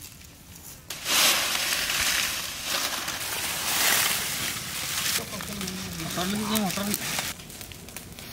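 Dry leaves rustle loudly.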